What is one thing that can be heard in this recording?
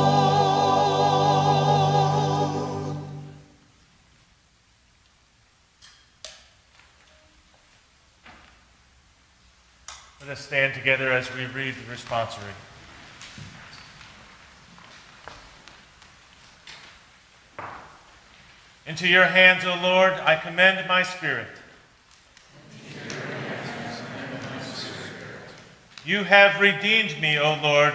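A man sings slowly and steadily, holding long notes.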